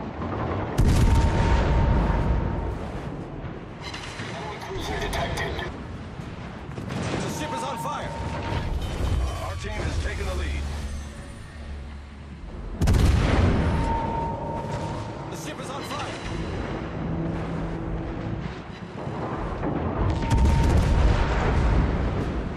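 Shells explode and splash into water.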